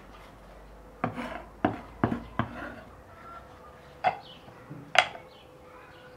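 A wooden lid clinks against a ceramic pot.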